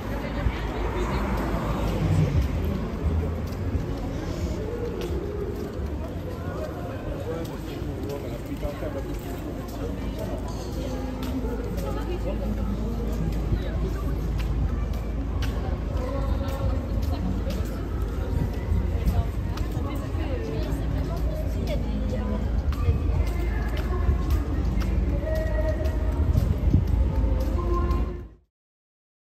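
Footsteps tap on the pavement.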